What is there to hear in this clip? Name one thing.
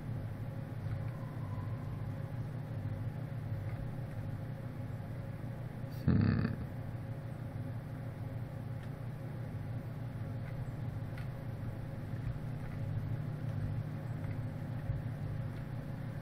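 Fire crackles softly in a furnace.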